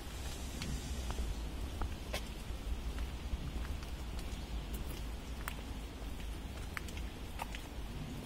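Wind rumbles outdoors.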